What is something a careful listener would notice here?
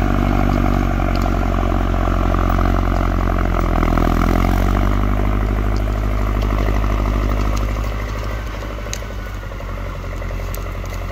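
A log scrapes and drags across snow.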